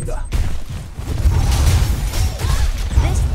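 Magic blasts whoosh and crackle loudly.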